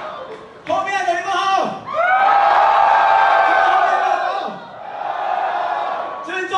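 A man shouts with energy into a microphone over loud concert speakers.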